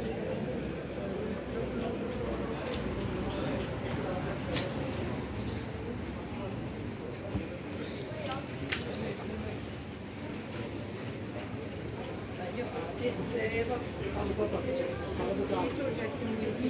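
Clothes rustle as a hand sorts through them.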